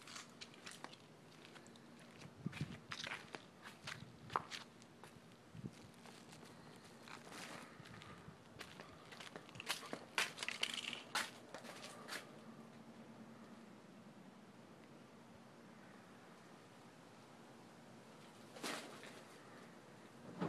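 Rain falls steadily outdoors, with drops tapping nearby.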